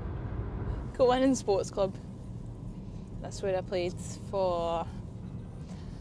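A woman speaks inside a car.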